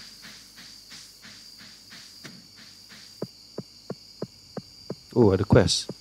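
Footsteps tap along at an even, quick pace.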